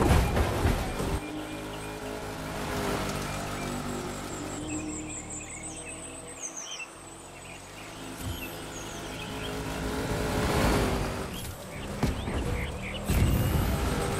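Tyres crunch over a loose dirt track.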